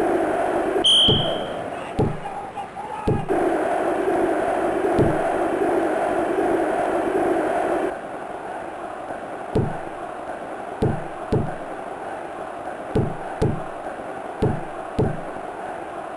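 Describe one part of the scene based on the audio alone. A video game football is kicked with dull thuds.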